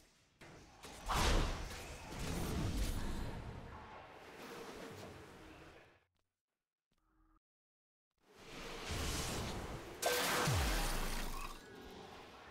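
Magic spells whoosh and crash in bursts.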